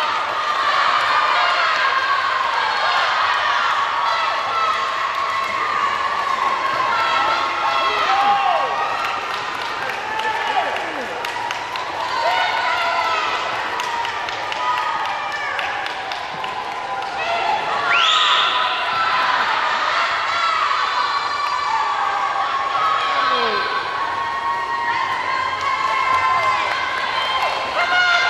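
Swimmers splash through water.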